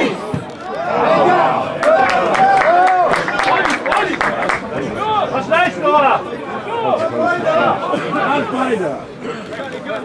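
Footballers shout to each other across an open pitch outdoors.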